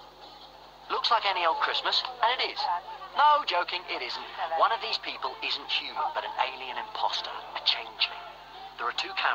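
An elderly woman laughs loudly.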